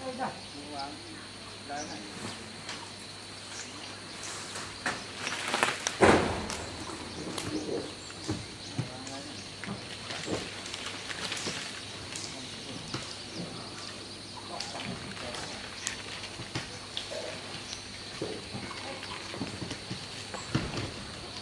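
Rain patters on leaves.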